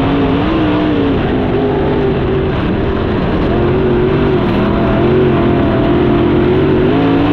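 A racing car engine roars loudly up close, its pitch rising and falling.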